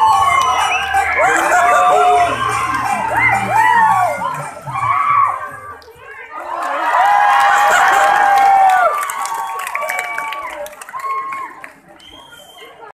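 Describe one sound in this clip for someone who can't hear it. A crowd cheers and whistles loudly outdoors.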